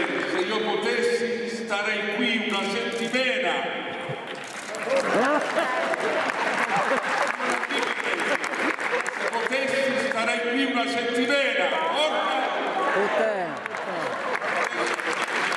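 An elderly man sings through a microphone.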